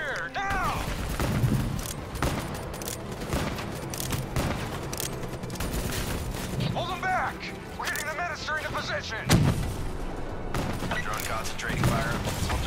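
Gunfire rattles in quick bursts close by.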